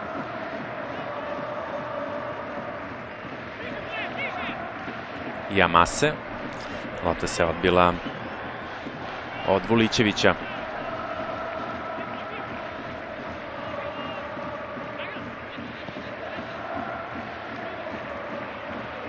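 A large stadium crowd chants and cheers steadily.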